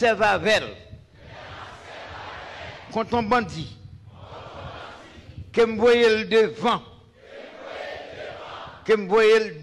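A man sings short phrases close into a microphone.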